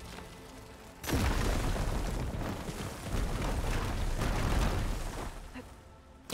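A loud crackling rumble of crumbling rock fills the air.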